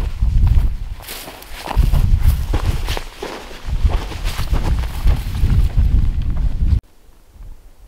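Footsteps swish and crunch through dry grass close by.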